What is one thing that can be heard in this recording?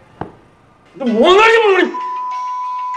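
A man cries out loudly.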